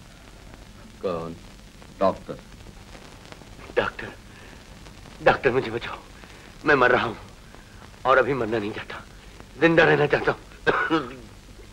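A middle-aged man speaks anxiously in short bursts, close by.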